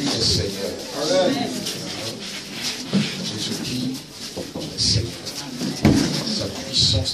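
A man speaks loudly and with animation through a microphone and loudspeaker in an echoing room.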